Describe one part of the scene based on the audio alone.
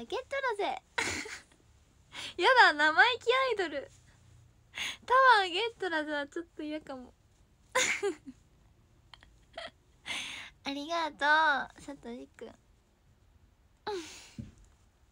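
A young woman giggles.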